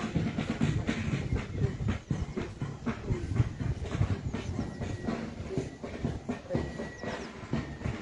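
A crowd of men and women murmurs and talks nearby outdoors.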